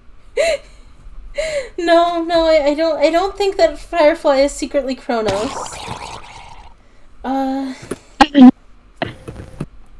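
A young woman laughs into a close microphone.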